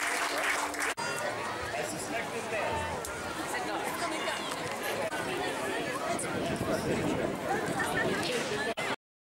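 Women chat close by.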